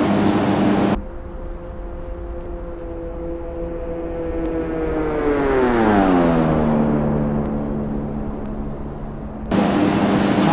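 A small plane's engine roars past outdoors, its pitch dropping as it goes by.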